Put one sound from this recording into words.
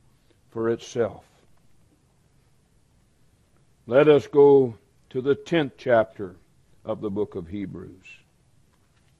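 A middle-aged man speaks slowly and deliberately through a microphone, with pauses.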